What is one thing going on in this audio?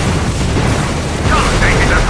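A shell explodes with a heavy boom.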